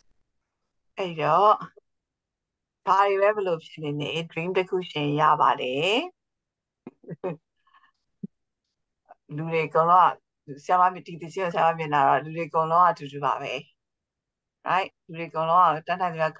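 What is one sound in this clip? A middle-aged woman speaks calmly through an online call.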